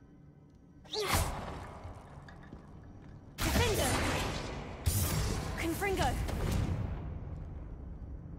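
A magic spell whooshes and crackles loudly.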